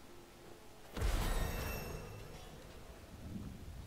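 A bright, shimmering chime rings out and slowly fades.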